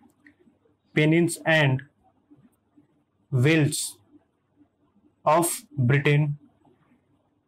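A man speaks calmly and clearly, close by, in short phrases.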